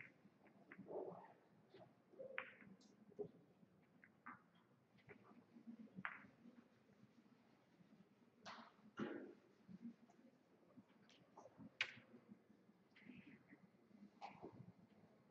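Pool balls clack and knock against each other on a table.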